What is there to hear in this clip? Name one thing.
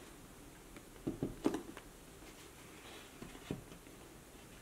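A boot knocks against a wooden tabletop.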